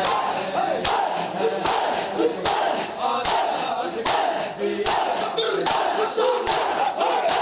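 A crowd of men chant loudly in rhythm.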